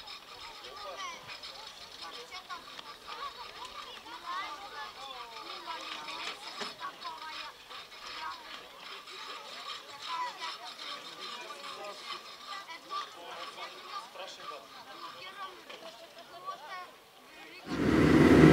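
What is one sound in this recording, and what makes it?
Young people chatter and talk nearby in a murmur of voices.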